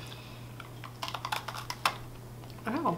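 Crispy snacks crunch loudly while being chewed close by.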